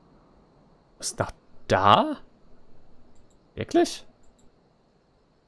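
A young man speaks casually and briefly into a close microphone.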